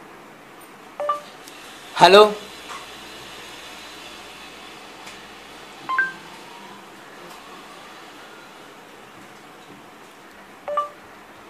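A phone gives short electronic beeps.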